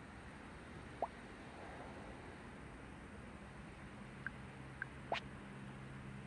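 A short electronic blip sounds as a chat message pops up.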